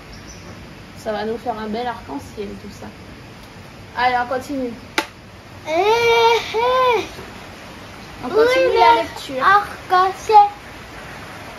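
A young woman speaks calmly and slowly nearby.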